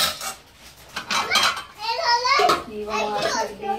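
A metal lid clinks onto a pot.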